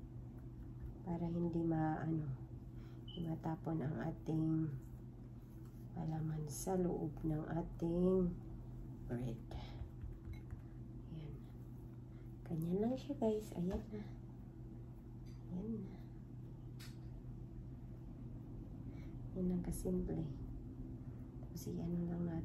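A woman talks calmly and close by.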